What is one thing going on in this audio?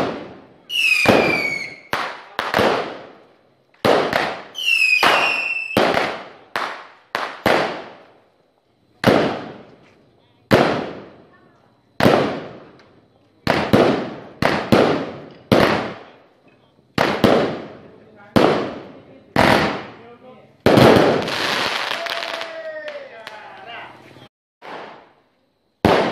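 Fireworks burst with loud, echoing bangs, one after another.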